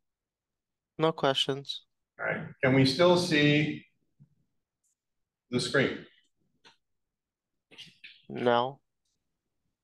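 An older man speaks calmly, heard through a microphone.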